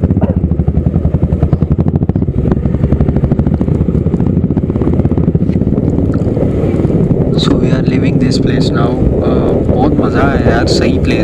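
A motorcycle engine thrums steadily close by as it rides along.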